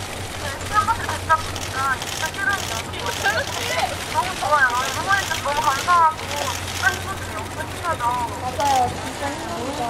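A young woman speaks brightly into a microphone over loudspeakers.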